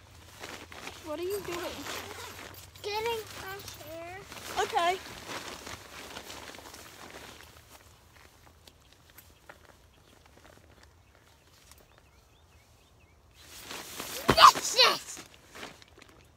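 A young boy talks playfully close by.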